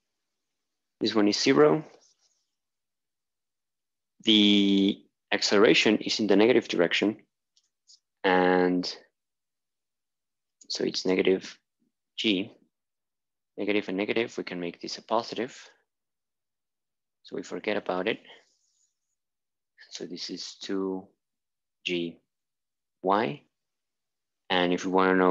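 A young man explains calmly in short bursts, close by.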